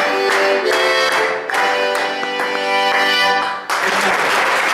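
An accordion plays a lively tune up close.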